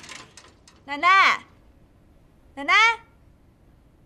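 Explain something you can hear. A young woman calls out loudly.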